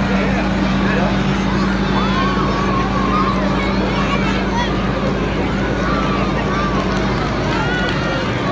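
A crowd of children chatters and calls out nearby.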